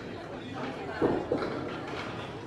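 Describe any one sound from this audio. Bowling pins clatter as a ball strikes them.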